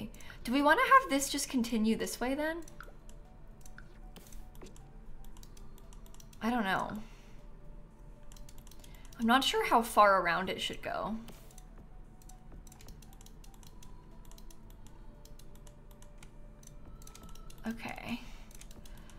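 A young woman talks with animation through a microphone, close up.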